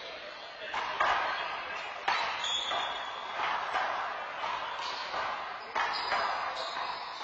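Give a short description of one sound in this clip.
A rubber ball smacks hard against a wall in a large echoing court.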